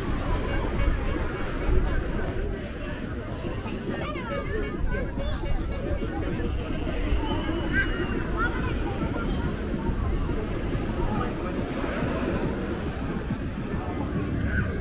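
Small waves wash steadily onto a sandy shore.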